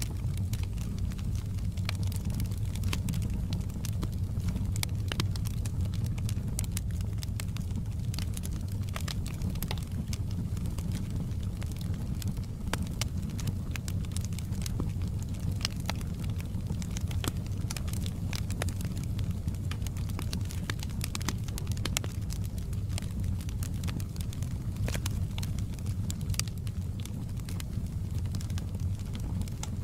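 A wood fire crackles and pops with sharp snaps.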